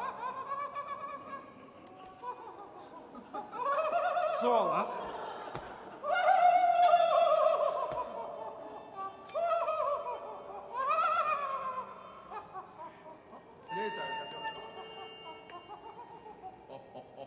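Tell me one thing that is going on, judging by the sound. Musicians play a slow, swelling piece in a large, echoing hall.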